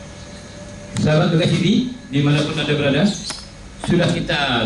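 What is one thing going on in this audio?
A second man speaks into a microphone through a loudspeaker.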